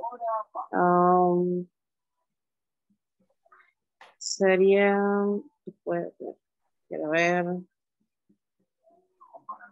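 A woman speaks slowly and drawn out over an online call.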